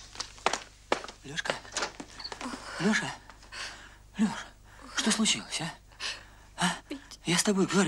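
A man speaks softly close by.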